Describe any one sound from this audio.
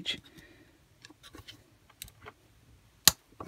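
A screwdriver clicks and scrapes against small metal parts.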